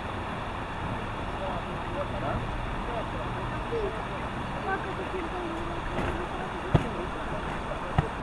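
A man rummages and rustles a tarpaulin in a boat.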